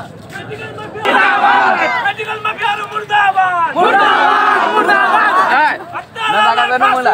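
A man shouts loudly and with force, close by.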